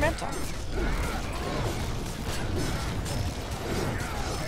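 Magical blasts boom and crackle in a fight.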